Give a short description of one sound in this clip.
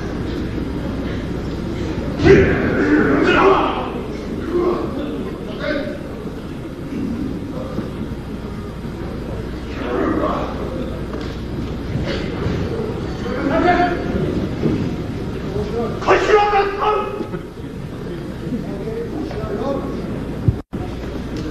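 A crowd murmurs and shouts in a large echoing hall.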